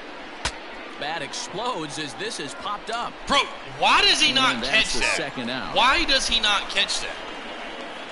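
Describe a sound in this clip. A young man talks excitedly into a close microphone.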